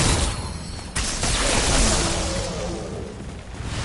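An electric beam zaps loudly.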